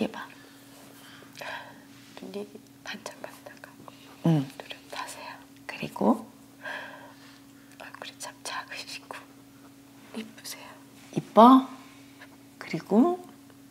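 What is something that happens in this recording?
An elderly woman speaks softly and with feeling, close to a microphone.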